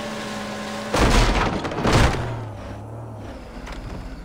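A jet ski crashes through bushes and grass.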